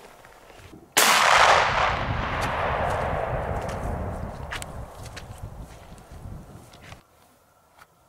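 A gunshot cracks loudly and echoes away across open ground.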